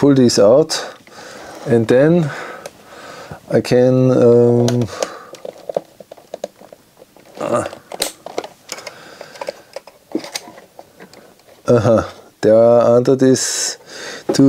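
A small screwdriver scrapes and taps on plastic.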